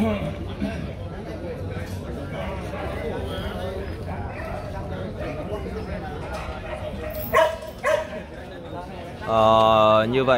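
A crowd of spectators murmurs and chats outdoors.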